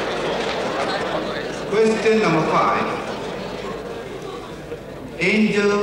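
A crowd of many people chatters in a large hall.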